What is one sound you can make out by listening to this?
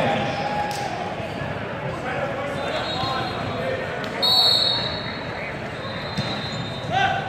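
Many voices chatter and echo in a large hall.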